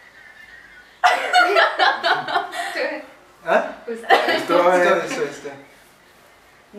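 Young people laugh together.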